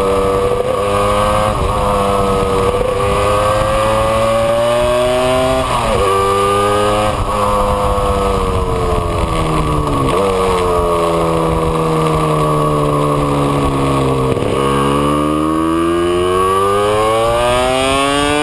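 A two-stroke twin motorcycle engine revs up and down as the bike runs through gears.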